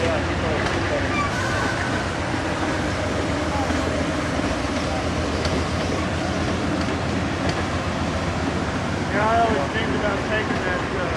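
Train wheels squeal against the rails.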